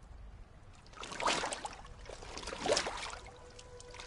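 A boot splashes into shallow water.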